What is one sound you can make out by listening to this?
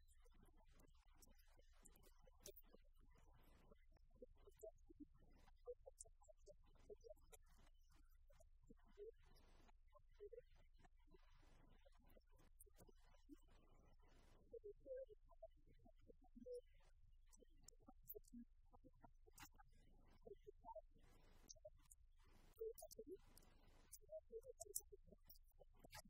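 A young woman speaks calmly through a microphone in a large room.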